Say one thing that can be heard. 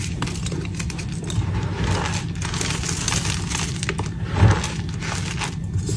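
Powdery crumbs pour and patter onto a pile.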